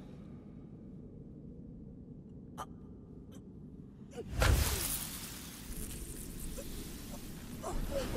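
A young man groans in pain close by.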